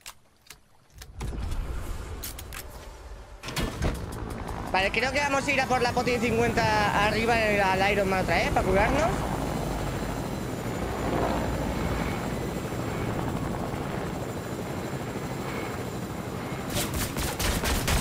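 A helicopter engine whirs steadily with beating rotor blades.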